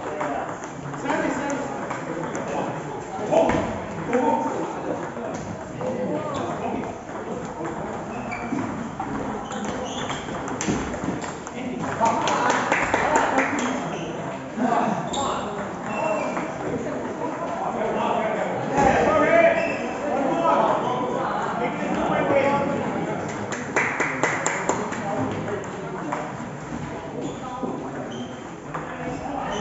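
Men talk nearby in an echoing hall.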